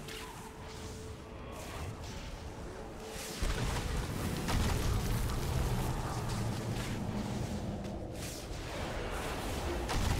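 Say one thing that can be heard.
Electric lightning crackles and zaps.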